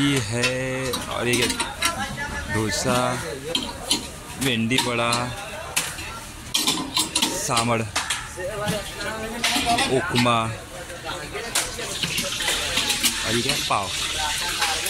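Metal lids clink against steel pots.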